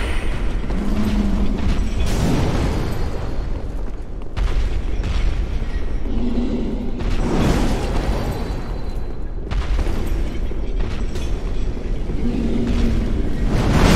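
Armoured footsteps clank on stone.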